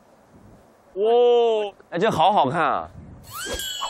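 A man speaks loudly with animation.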